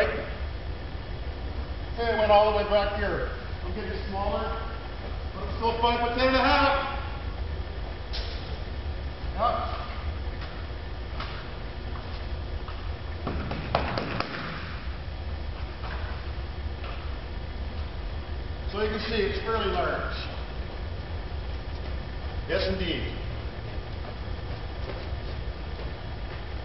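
A man's footsteps echo faintly in a large hall.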